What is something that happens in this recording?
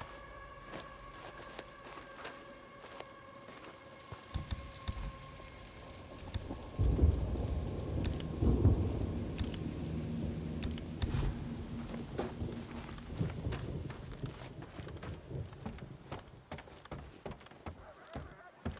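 Footsteps crunch over dry twigs and leaves.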